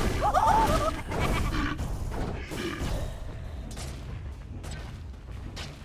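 Magic spells crackle and weapons clash in a fast fantasy battle.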